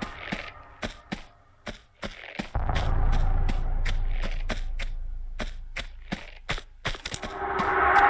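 Footsteps patter quickly across a hollow wooden floor.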